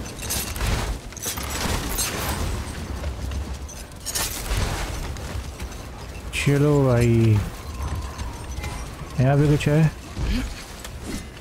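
A sled scrapes and hisses across snow.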